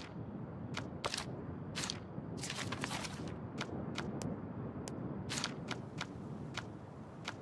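A video game menu makes short clicking and swishing sounds.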